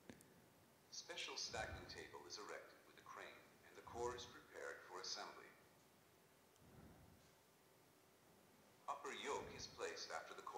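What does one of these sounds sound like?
A man speaks calmly, heard through a microphone in an echoing room.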